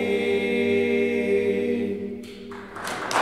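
A group of men sings a long, held chord together in a reverberant hall.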